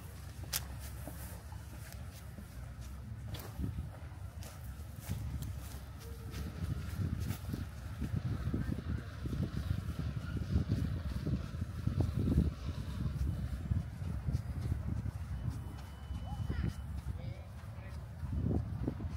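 Small waves lap gently at the water's edge.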